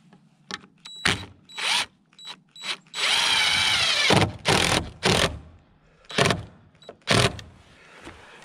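A cordless drill whirs as it drives a screw into wood.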